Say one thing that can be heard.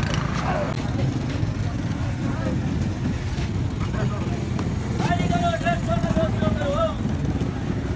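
Motorbike engines rumble past at low speed.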